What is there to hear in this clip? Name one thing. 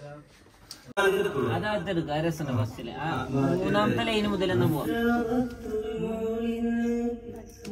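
A man sings into a microphone, heard loudly through speakers.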